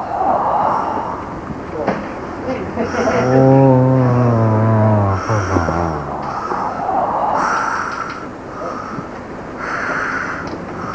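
A man talks quietly, muffled and distant behind glass.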